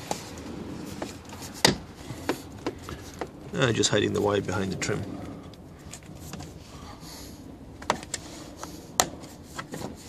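Plastic trim clicks and rattles as hands pry at it.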